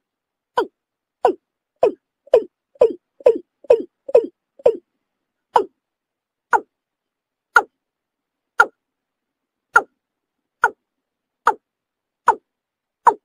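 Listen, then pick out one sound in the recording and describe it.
A bird gives short, sharp calls over and over, quickly at first and then more slowly.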